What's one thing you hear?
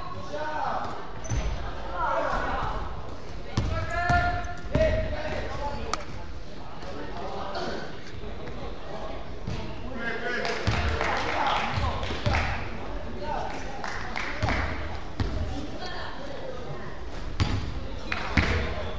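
A basketball bounces on a wooden floor with echoing thuds.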